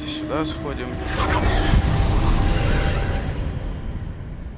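Magic sparks crackle and fizz in a loud rush.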